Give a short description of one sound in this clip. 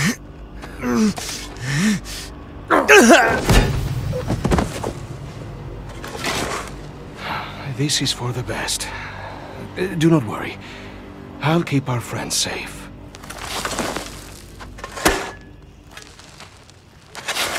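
A shovel digs into dirt and soil scrapes.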